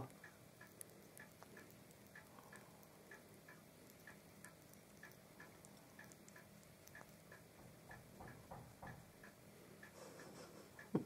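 A small animal laps liquid with soft, quick clicking licks.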